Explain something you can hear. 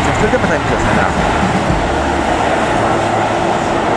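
A train rumbles past in the distance.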